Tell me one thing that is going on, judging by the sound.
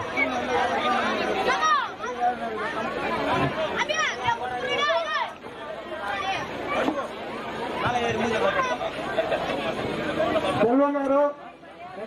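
A crowd of men and women talk and shout loudly outdoors.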